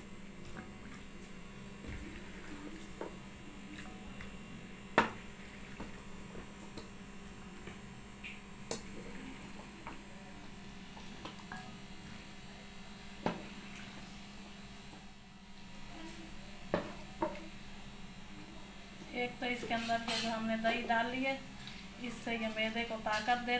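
A spoon stirs and scrapes through a thick salad in a glass bowl.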